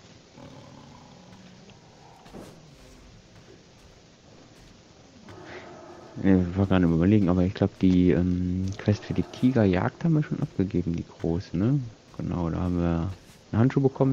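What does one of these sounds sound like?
A beast snarls.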